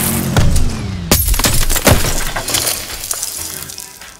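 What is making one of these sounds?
A heavy impact crashes.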